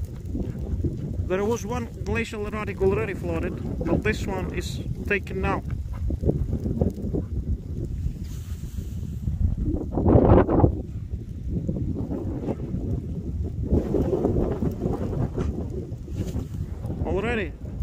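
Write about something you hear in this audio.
Molten lava hisses and crackles softly against a rock.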